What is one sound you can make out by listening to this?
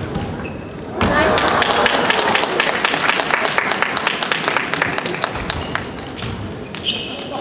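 Spectators applaud in a large echoing hall.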